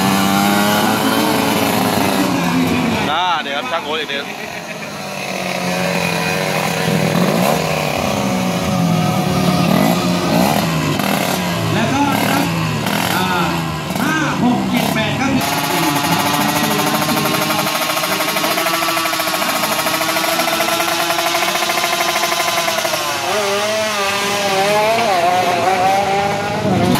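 A small motorcycle engine runs loudly close by, revving up and down.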